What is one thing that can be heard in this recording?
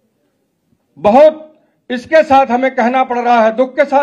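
An elderly man speaks forcefully into a microphone, heard through a loudspeaker.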